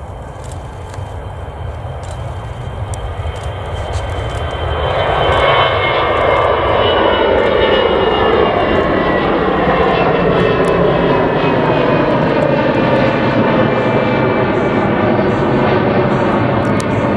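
A jet airliner's engines roar loudly as it takes off and climbs, growing louder with a high whine.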